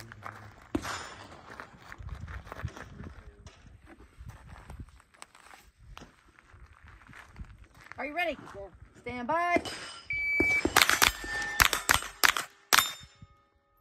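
A pistol fires loud sharp shots in quick bursts outdoors.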